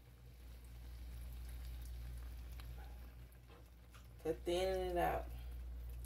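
Liquid pours into a pan of pasta.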